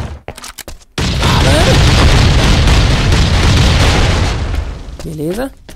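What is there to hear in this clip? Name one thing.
An explosion booms and roars loudly.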